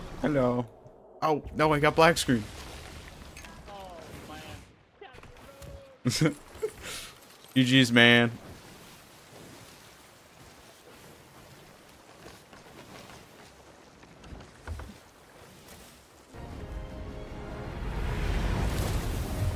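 Ocean waves surge and splash.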